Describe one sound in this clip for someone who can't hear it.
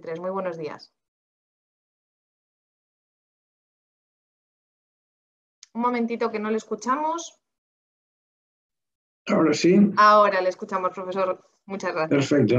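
An elderly man speaks calmly over an online call, pausing between phrases.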